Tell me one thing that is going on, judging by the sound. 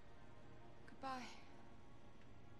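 A woman says a short word in a strained, tearful voice.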